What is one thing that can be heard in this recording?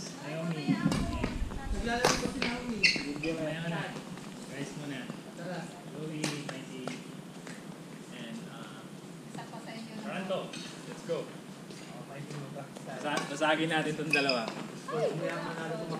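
Rackets hit a shuttlecock with sharp pops.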